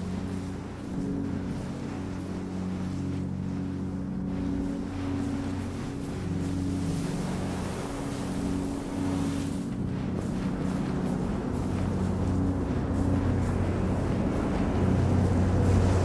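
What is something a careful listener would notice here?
Sand hisses softly as a figure slides down a dune.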